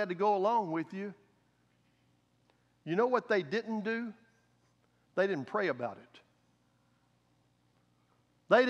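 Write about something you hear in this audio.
A middle-aged man speaks with animation into a microphone, in short bursts with pauses.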